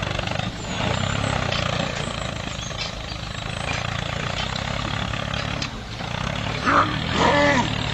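Wet mud squelches under rolling tyres.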